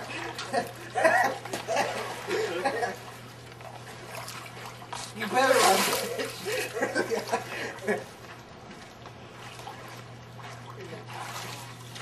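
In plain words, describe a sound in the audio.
Water splashes as a person swims.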